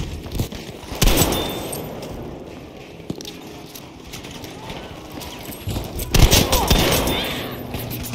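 A pump-action shotgun fires with a loud blast.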